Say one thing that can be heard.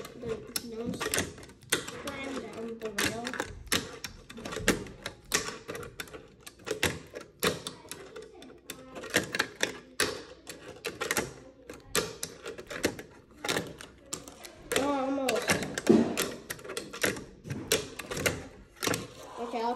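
A fingerboard clacks and rolls on a wooden ramp.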